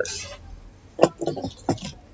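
A metal tool clinks on a hard table.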